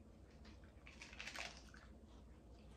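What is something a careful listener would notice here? A girl bites into a crunchy taco shell.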